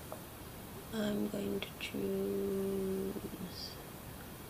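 A woman hums a low, held note.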